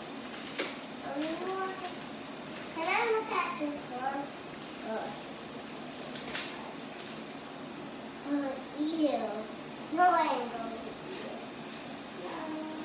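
A young girl talks in a high voice nearby.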